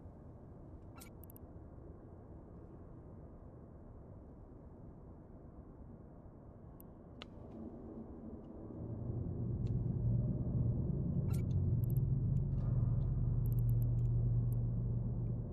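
Soft clicks tick now and then.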